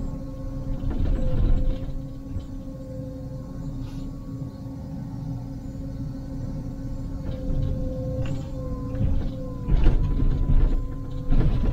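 An excavator bucket scrapes and knocks against soil and rubble.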